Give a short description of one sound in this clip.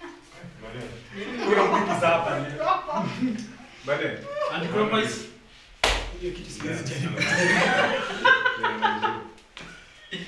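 A group of young people laugh loudly.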